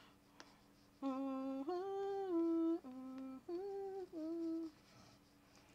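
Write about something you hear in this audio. A young woman sings briefly into a close microphone.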